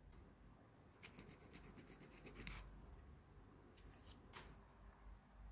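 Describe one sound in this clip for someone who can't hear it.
Thin plastic film crinkles as a hand peels it away.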